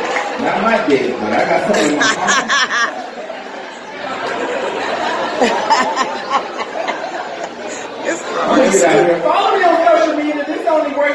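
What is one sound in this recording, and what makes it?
A woman sings loudly into a microphone through a loudspeaker.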